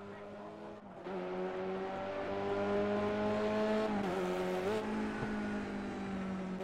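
A car engine roars up close, dropping briefly in pitch as it shifts gear.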